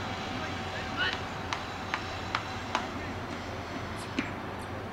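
A cricket bat knocks a ball in the distance, outdoors.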